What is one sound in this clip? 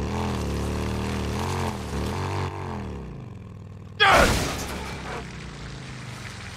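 A motorcycle engine revs and rumbles as the bike rides over rough ground.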